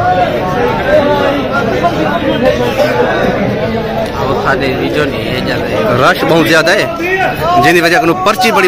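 A crowd of men talk and murmur all around outdoors.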